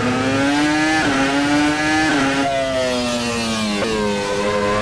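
A racing car engine drops in pitch sharply as gears change up.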